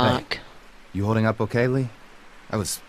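A younger man speaks calmly, close by.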